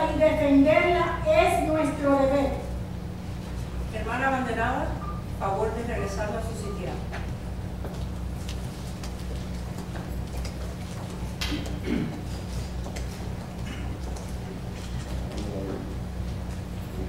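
A crowd murmurs and shuffles quietly.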